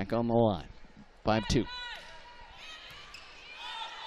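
A volleyball is struck hard with a hand.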